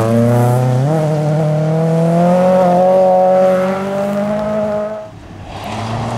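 A rally car engine revs hard and fades as the car speeds away.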